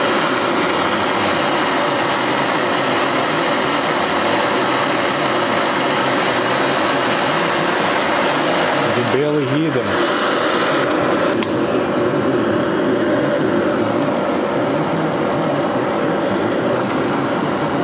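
A valve radio hisses with static through its loudspeaker.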